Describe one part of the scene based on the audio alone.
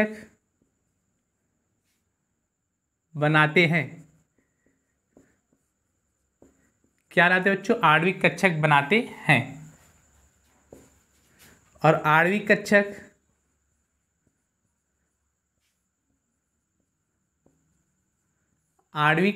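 A young man speaks calmly and clearly in short phrases, close by.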